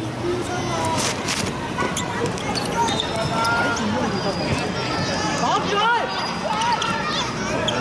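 Shoes squeak sharply on a hard court.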